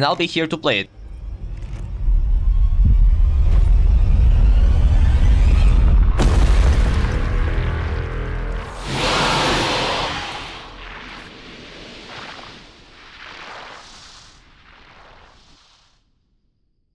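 A deep rumble swells and roars, then fades away.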